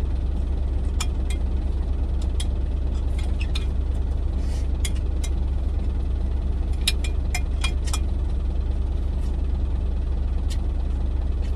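A fork clicks and scrapes against a plastic container.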